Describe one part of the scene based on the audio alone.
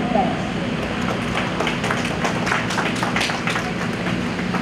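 A group of people applaud in a large, echoing hall.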